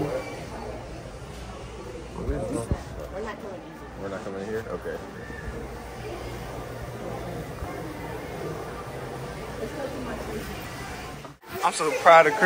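Many voices murmur and chatter in a large echoing hall.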